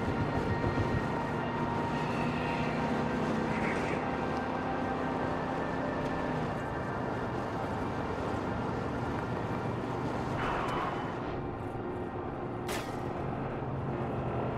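Tyres rumble over a rough dirt road.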